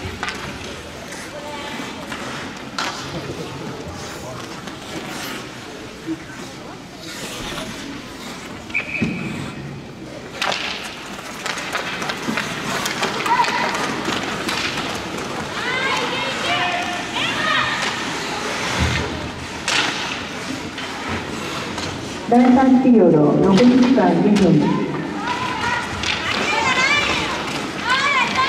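Skates scrape and hiss on ice in a large echoing rink.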